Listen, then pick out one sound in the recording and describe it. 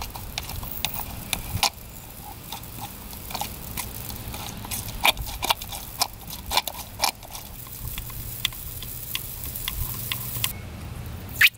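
A small hand pump clicks and squeaks repeatedly.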